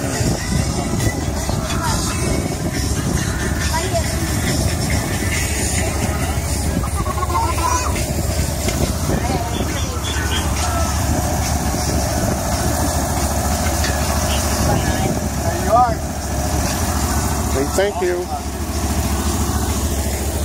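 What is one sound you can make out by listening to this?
A crowd of adults and children chatter nearby.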